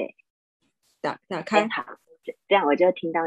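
A woman speaks over an online call.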